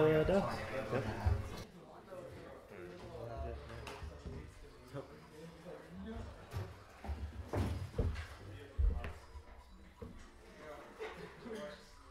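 Plastic game pieces click softly on a table.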